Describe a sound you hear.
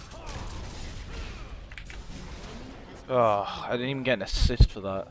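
Magic blasts crackle and rumble during a fast battle.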